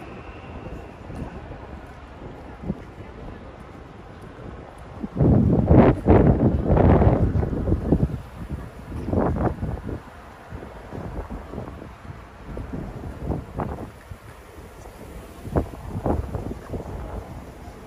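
City traffic rumbles in the distance.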